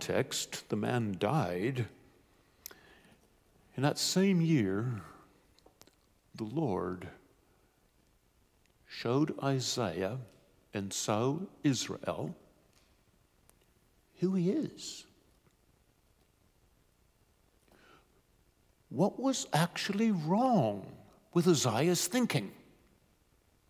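A middle-aged man speaks calmly through a microphone in bursts with pauses.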